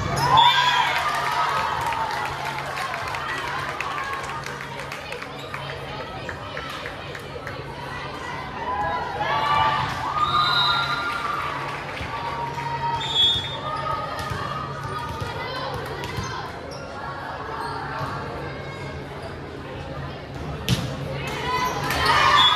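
Volleyballs thud on a hard floor.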